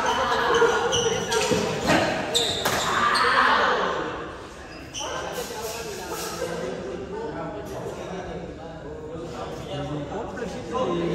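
Sport shoes squeak and scuff on a hard court floor.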